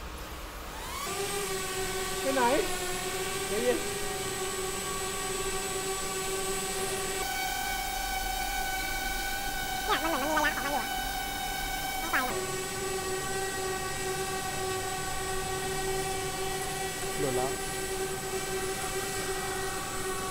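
A small drone whirs with a steady high whine.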